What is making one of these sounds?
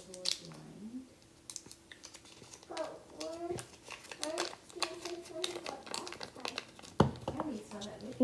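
Paper crinkles and rustles in hands.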